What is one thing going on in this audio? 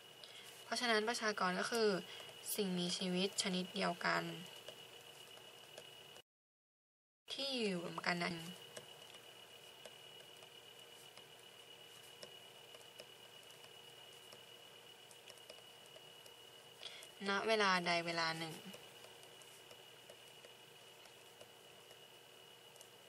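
A pen writes on paper with a soft scratching.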